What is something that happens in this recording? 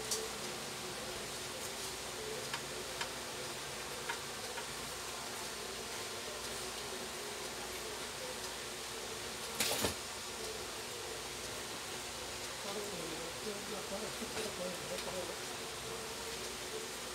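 Hands handle wires with small clicks and rustles.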